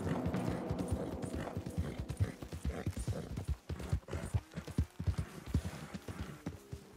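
Horse hooves thud rapidly on soft ground.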